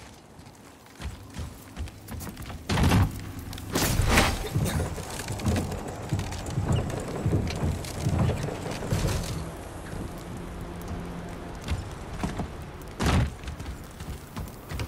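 Heavy footsteps thud on wooden planks.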